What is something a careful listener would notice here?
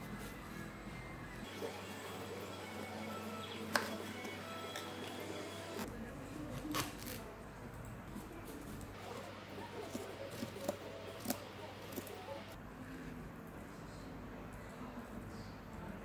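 A knife cuts through a melon with crunchy, wet sounds.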